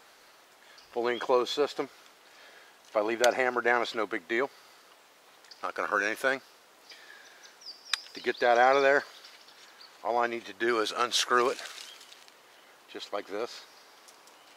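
An elderly man speaks calmly and close by in short phrases, with pauses between them.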